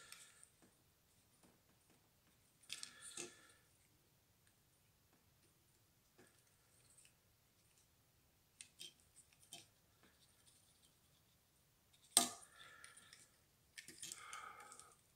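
Small plastic parts click and snap together as they are fitted by hand.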